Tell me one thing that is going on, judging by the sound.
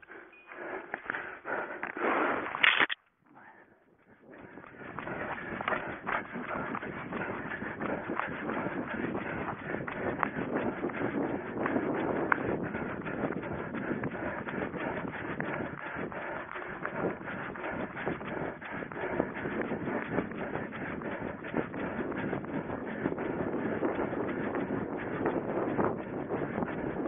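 Tall grass swishes and rustles against a runner's legs.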